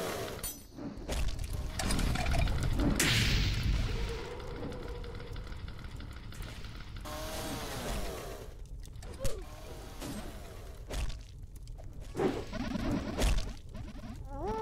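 Explosions boom and crackle, again and again.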